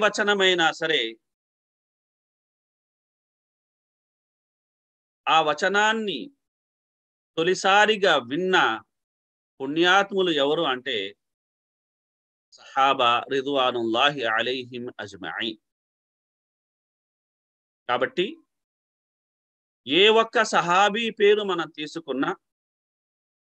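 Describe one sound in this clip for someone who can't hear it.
A middle-aged man speaks calmly in short phrases over an online call, with pauses between.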